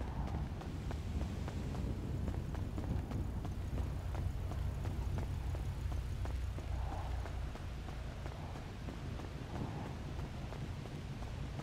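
Footsteps slap quickly on pavement.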